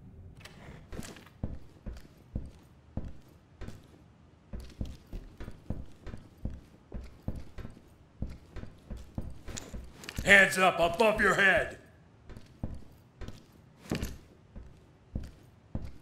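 Footsteps thud steadily on a hard floor at a walking pace.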